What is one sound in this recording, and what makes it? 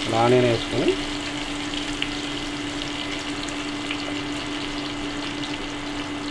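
Onions sizzle and crackle in hot oil in a pan.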